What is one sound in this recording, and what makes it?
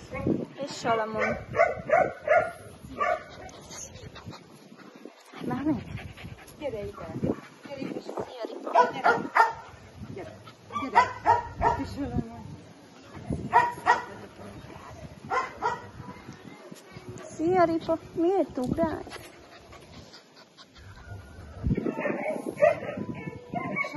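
Puppies bark and yelp in short bursts.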